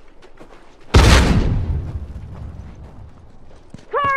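A loud explosion booms and roars briefly.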